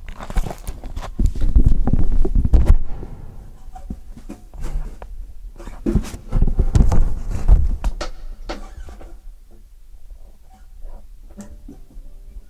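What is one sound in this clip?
Handling knocks and thumps sound close by.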